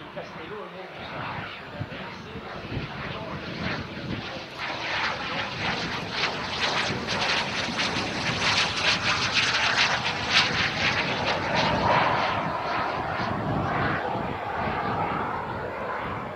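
A small twin-jet aircraft roars as it flies overhead.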